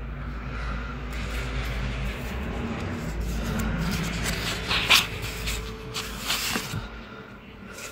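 Sheets of paper rustle and crinkle as they are handled.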